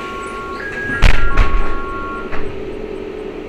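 A bus rattles and clunks over bumps.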